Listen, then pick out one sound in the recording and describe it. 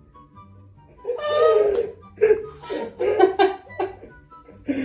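A young man laughs nearby.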